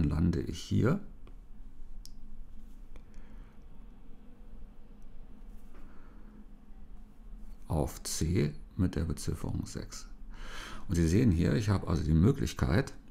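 An older man speaks calmly and closely into a microphone, with pauses.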